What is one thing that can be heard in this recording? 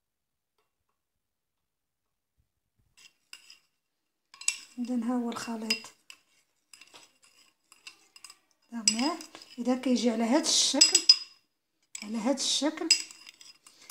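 A metal spoon stirs and clinks against a ceramic bowl.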